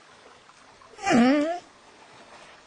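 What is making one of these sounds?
A cartoon bear gives a short, high-pitched cry.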